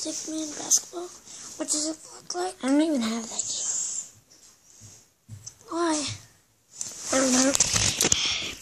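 A girl talks excitedly, close up.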